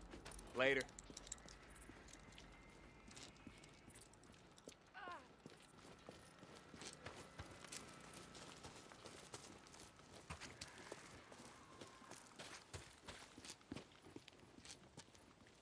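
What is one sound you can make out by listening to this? Footsteps run quickly over ground and grass.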